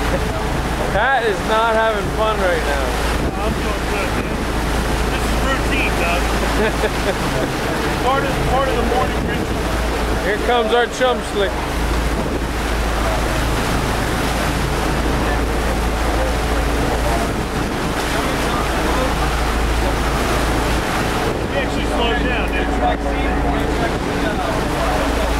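A man talks cheerfully close by, outdoors.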